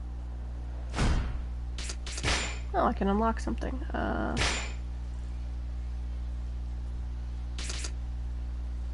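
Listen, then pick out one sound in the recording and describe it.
Short electronic game menu sounds chime and swish.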